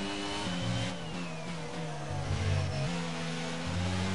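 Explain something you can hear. A racing car engine drops in pitch while braking into a corner.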